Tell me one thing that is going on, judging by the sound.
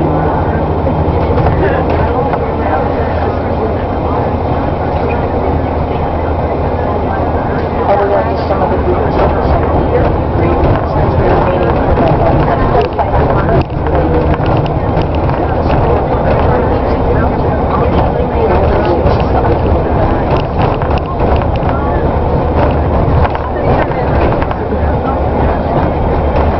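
Rain patters steadily on a car's windscreen.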